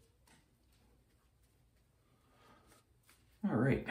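A shaving brush swishes lather on a man's cheek.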